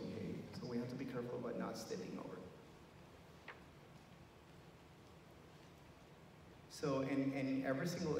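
A middle-aged man speaks calmly into a microphone, heard through loudspeakers in a large echoing hall.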